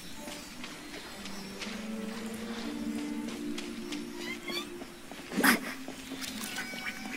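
Light footsteps patter over soft grass.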